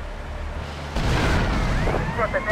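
A cannon fires with a sharp blast.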